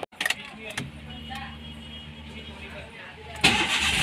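Keys jingle and click in a car's ignition.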